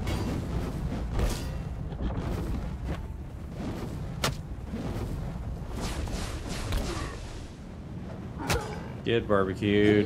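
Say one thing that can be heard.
Heavy blows and clashing weapons thud and crack in a fight.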